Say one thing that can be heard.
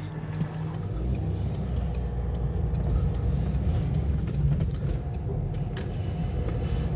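Tyres roll over a road surface.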